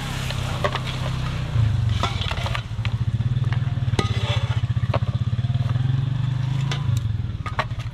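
A metal spatula scrapes against a metal bowl.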